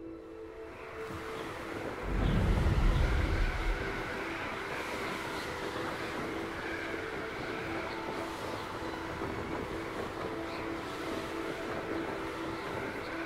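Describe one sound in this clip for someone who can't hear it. Wind rushes loudly past as a broom dives and speeds through the air.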